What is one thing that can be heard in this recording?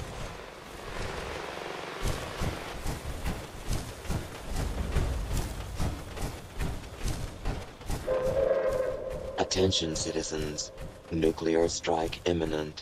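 Heavy armoured footsteps thud through dry grass.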